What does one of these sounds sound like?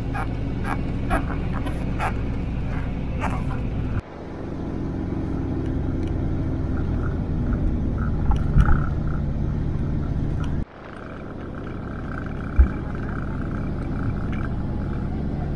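A vehicle engine rumbles steadily from inside a moving car.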